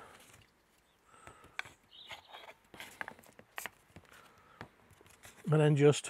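A small metal tool scrapes across a sharpening stone.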